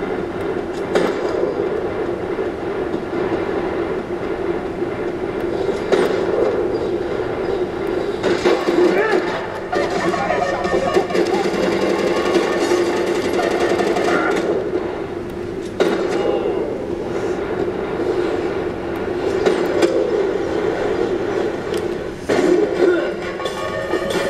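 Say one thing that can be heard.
Gunshots crack from a television speaker in sharp bursts.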